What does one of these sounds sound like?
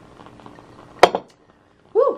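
A glass is set down on a table with a knock.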